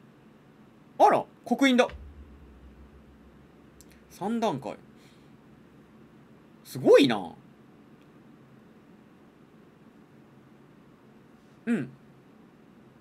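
A young man speaks in short bursts close to a microphone.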